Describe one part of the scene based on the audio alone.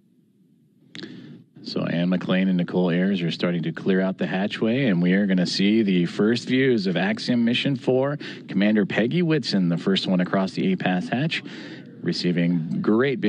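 A man speaks steadily and clearly through a microphone.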